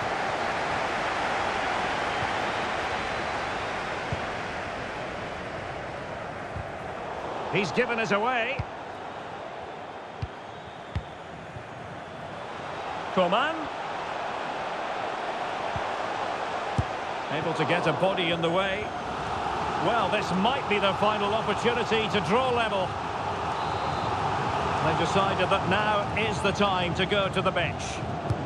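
A crowd roars steadily in a stadium.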